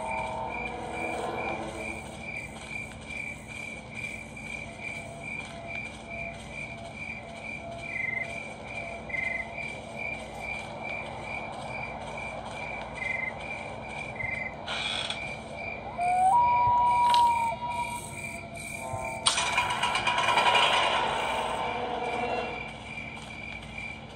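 Footsteps thud steadily on the ground.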